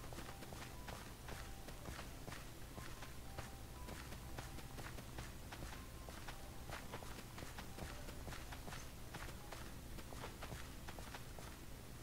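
Seeds are pressed into soft soil with quick, repeated soft pops.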